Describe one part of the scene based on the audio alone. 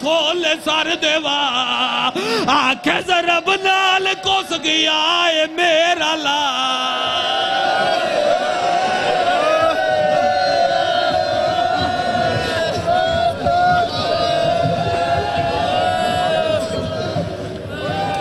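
Men beat their chests with their hands in rhythm.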